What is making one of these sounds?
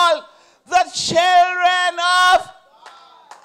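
A middle-aged woman cries out in a long, drawn-out shout through a microphone.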